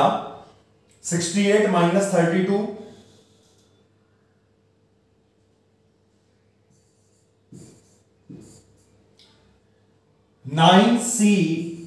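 A man speaks calmly and clearly into a close microphone.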